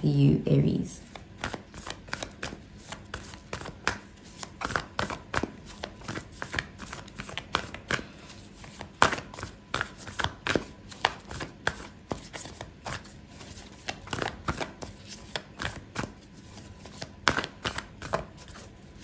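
Playing cards riffle and flick softly between hands.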